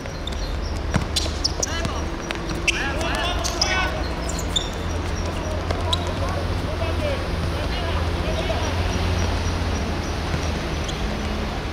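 Trainers scuff and squeak on the court surface.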